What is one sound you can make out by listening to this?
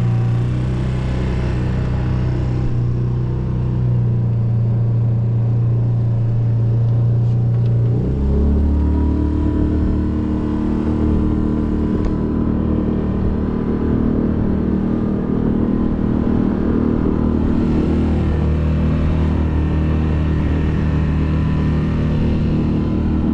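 A boat's outboard motor hums steadily.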